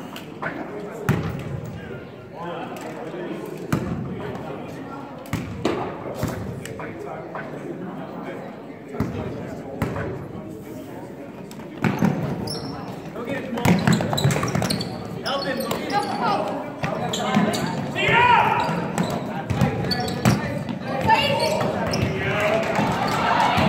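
A basketball bounces on a hard floor in a large echoing gym.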